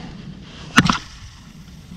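A fishing reel's bail snaps shut with a sharp click.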